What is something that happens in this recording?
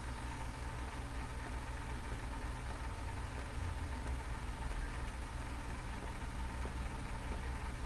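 A match flares and hisses as it is lit.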